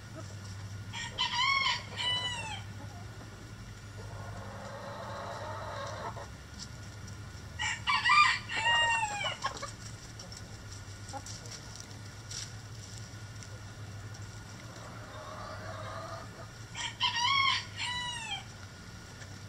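Hens give loud, rising and falling clucking calls in short bursts.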